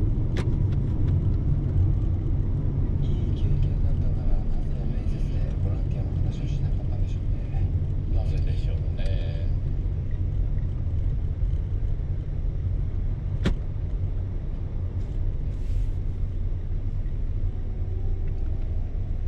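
Tyres roll on a highway with a steady road noise.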